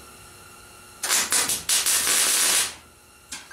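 An electric welding arc crackles and hisses in loud bursts.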